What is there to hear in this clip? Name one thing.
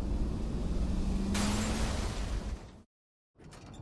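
A car engine rumbles at idle.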